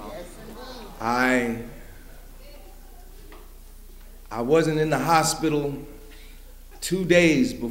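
An elderly man speaks loudly and with feeling into a microphone.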